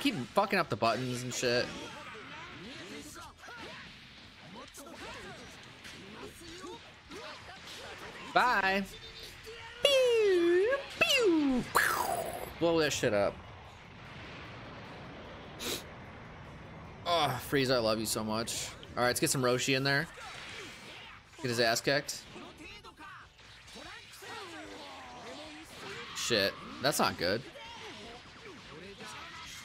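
Game characters shout and grunt during a fight.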